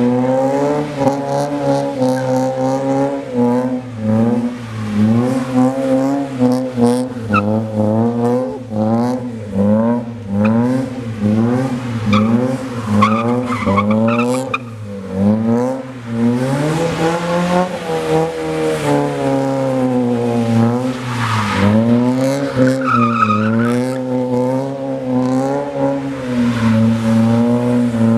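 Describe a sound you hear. Tyres squeal on wet pavement as a car drifts.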